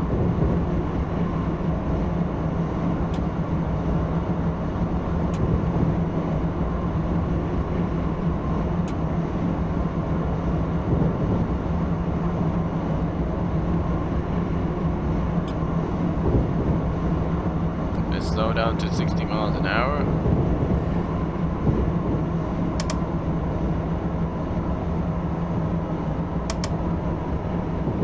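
A train engine hums steadily as the train rolls along.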